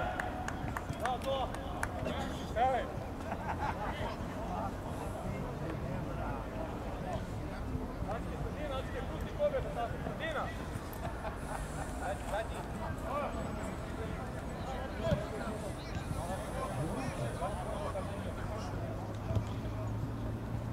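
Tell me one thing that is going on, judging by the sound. Players shout and call out across an open field outdoors.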